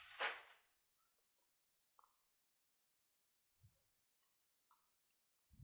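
A needle clicks softly as it pokes through rubber.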